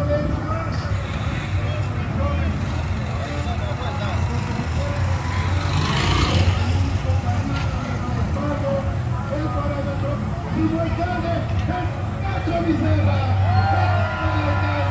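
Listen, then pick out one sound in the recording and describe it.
Motor rickshaw engines hum and idle nearby.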